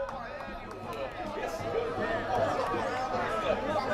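Young men shout and cheer together in the distance.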